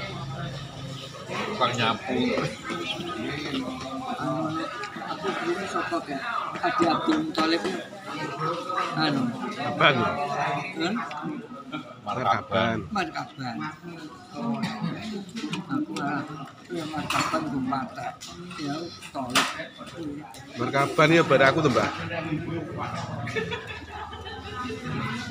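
Adults chat casually close by.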